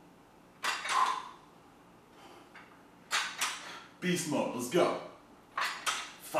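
A man exhales sharply with each effort.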